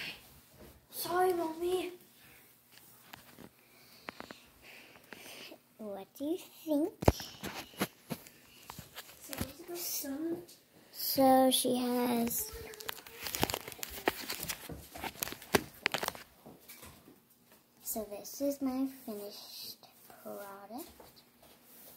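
A young girl speaks close to the microphone.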